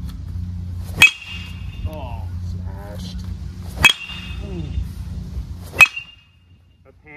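A metal bat cracks sharply against a baseball, ringing briefly.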